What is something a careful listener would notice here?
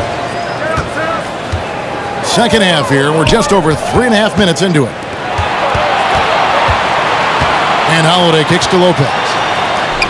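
A basketball bounces on a wooden court in steady dribbles.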